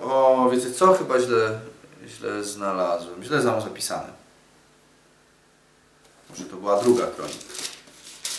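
A young man reads aloud calmly, close by.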